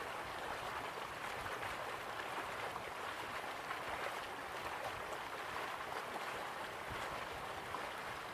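A waterfall roars steadily.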